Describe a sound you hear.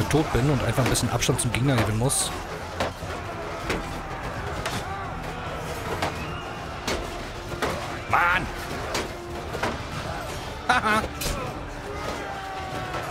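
Men shout and yell in battle.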